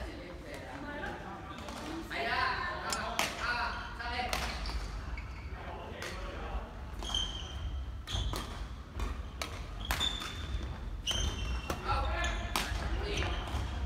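Young people talk and call out in a large echoing hall.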